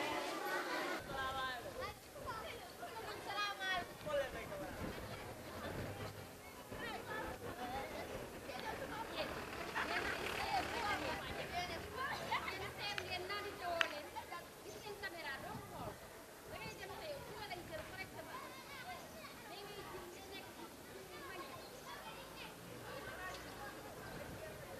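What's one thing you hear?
Many children chatter and call out outdoors.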